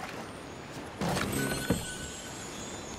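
A wooden chest creaks open.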